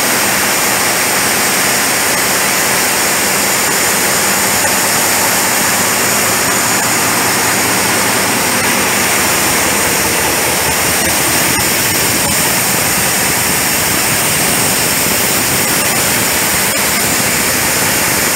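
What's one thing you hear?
A large engine runs with a loud, steady roar and hiss, echoing through a big hall.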